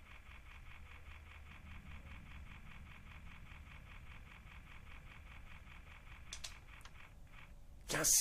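A mechanical counter clicks rapidly as its wheels turn.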